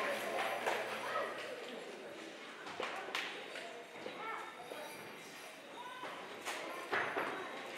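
An audience murmurs and shifts in seats.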